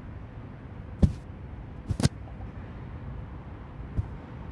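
Soft thuds sound as a game character grabs ledges while climbing.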